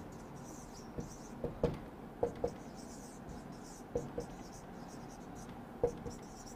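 A marker taps against a whiteboard.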